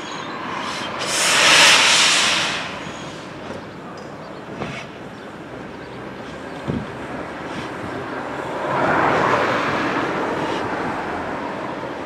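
Steam bursts loudly from a steam locomotive.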